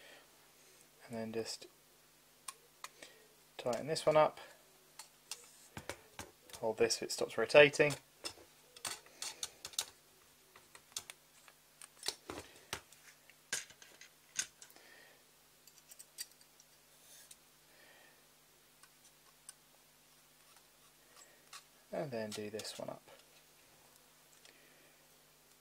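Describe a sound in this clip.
A small screwdriver clicks and scrapes against metal screws.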